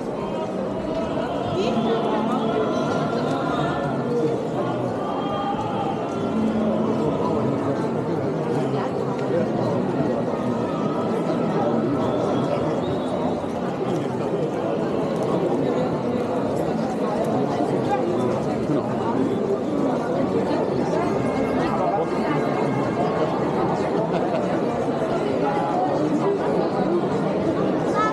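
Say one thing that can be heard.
A crowd of people chatter and murmur nearby, outdoors.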